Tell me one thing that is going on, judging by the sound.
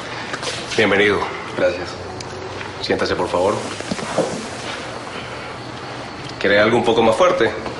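A man speaks firmly and close by.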